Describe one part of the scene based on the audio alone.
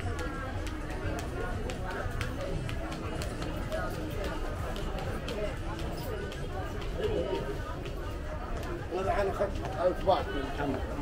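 Young women talk casually close by.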